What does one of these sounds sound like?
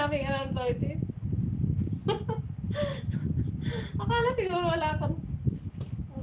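A young woman laughs and talks close by.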